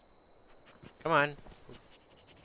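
A dog barks once nearby.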